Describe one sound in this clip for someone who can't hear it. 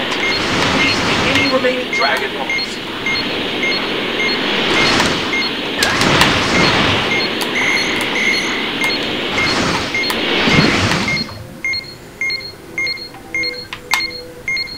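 A radar beeps at a steady, quick pace.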